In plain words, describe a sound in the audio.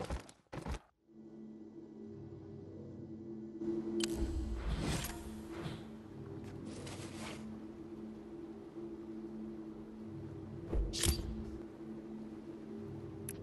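Soft game music hums steadily in the background.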